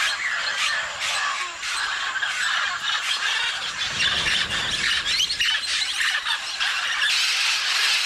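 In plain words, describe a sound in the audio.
A large flock of parrots chatters and squawks noisily.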